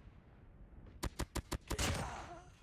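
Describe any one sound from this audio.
Gunshots fire in a quick burst.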